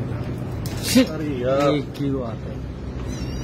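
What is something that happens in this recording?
A kitten mews loudly.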